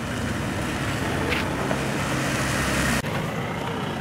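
A vehicle engine hums as it drives along a road.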